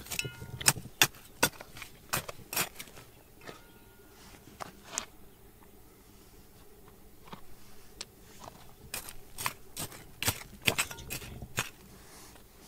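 A metal blade digs and scrapes into stony dirt.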